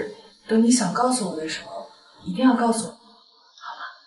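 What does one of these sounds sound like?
A young woman speaks softly and earnestly up close.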